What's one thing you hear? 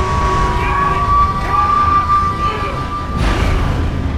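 A train whistle blows shrilly.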